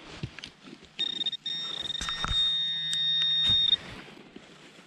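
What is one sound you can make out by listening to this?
A handheld probe buzzes with a steady high tone.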